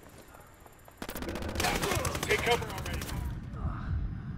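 Rapid gunshots fire in bursts at close range.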